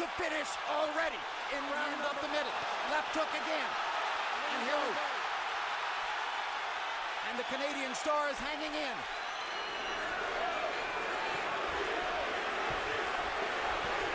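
A large crowd roars in a big arena.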